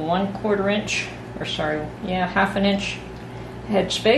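Water pours into a glass jar.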